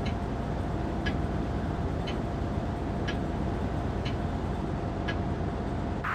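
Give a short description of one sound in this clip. A countdown beep sounds once a second.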